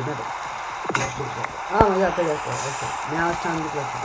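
Stone blocks crack and crumble as they break.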